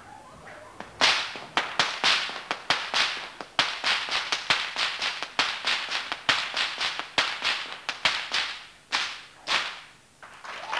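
A whip cracks sharply again and again.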